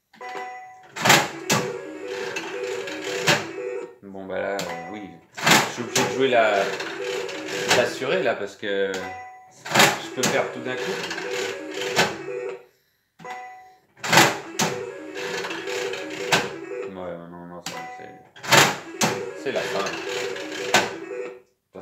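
A slot machine's reels stop with sharp clunks.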